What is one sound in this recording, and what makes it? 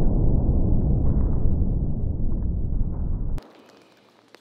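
A deep, slowed-down blast rumbles loudly.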